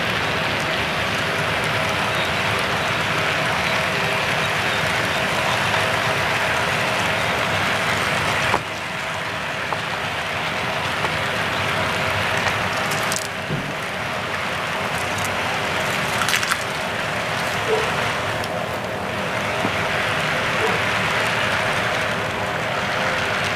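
A model train rumbles and clatters steadily along the track.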